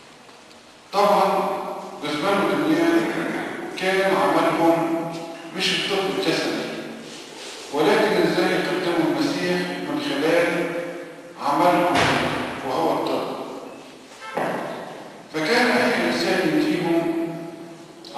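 An elderly man preaches into a microphone through loudspeakers, in phrases with pauses.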